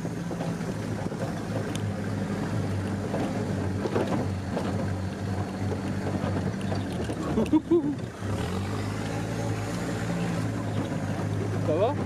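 A vehicle's body rattles and clunks over bumps.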